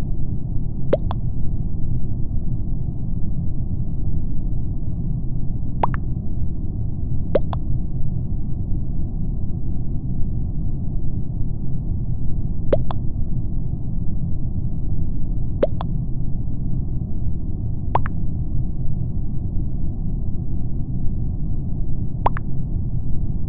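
A short electronic blip sounds several times, over a steady low rumble.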